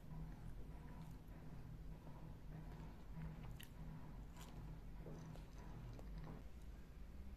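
A woman bites and chews a banana with soft, wet mouth sounds close by.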